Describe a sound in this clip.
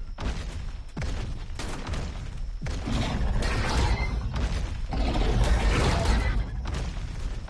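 A large creature's heavy footsteps thud on rocky ground.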